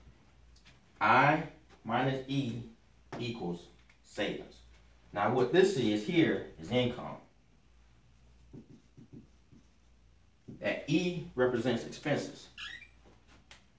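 A man speaks calmly and clearly, close by in a quiet room.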